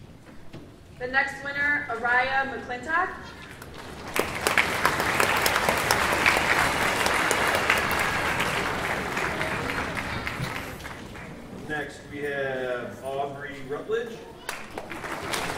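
A woman speaks with animation over a loudspeaker in a large hall.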